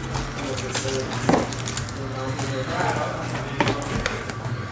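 Foil card packs rustle and crinkle in hands.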